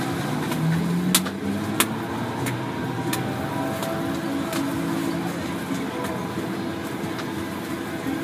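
Roti dough is slapped and flung against a steel counter.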